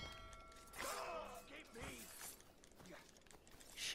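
Blows land with thuds in a close fight.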